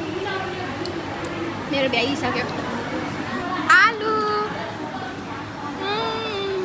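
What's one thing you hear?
Several young women chat and laugh close by.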